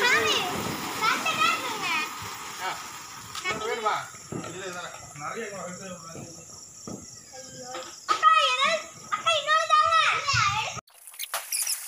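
Children shout and chatter excitedly nearby.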